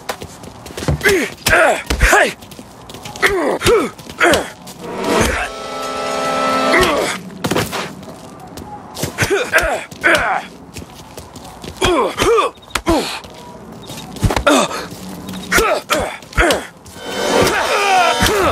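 Punches land with heavy thuds in a fistfight.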